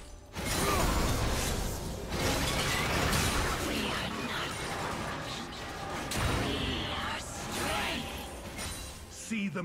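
Game sound effects of spells and melee combat clash and burst.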